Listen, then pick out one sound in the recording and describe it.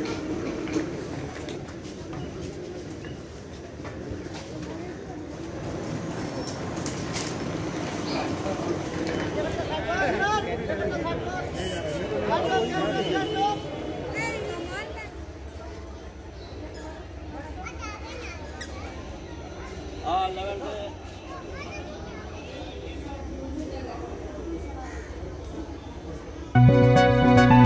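A crowd of people chatters in a busy hall.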